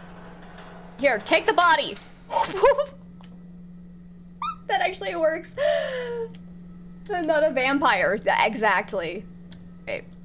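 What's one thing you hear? A young woman talks and laughs with animation close to a microphone.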